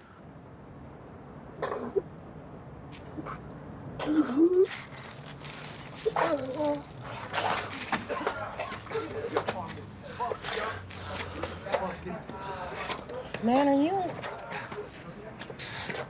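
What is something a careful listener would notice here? A man groans and gasps in pain.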